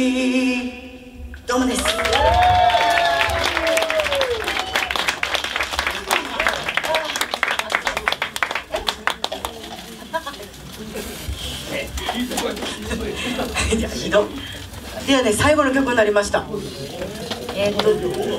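A band plays live music with drums, guitar and keyboard.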